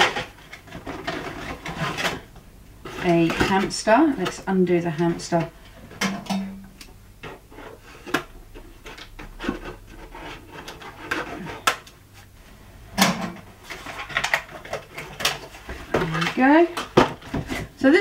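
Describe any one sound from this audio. Cardboard rustles and tears as packaging is opened.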